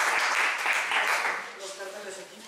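Applause rises briefly from an audience.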